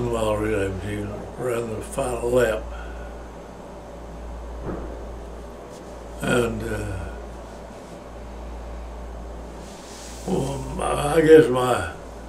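An elderly man speaks calmly and slowly, close by, with pauses.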